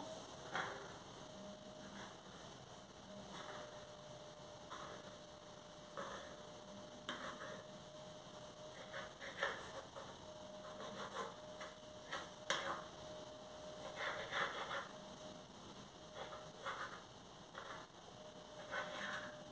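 Hands pat and press soft dough.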